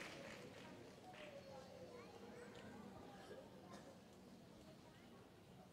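Adults talk quietly nearby.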